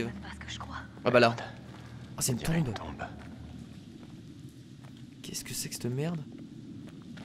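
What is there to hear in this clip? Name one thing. A young man talks and exclaims with animation, close to a microphone.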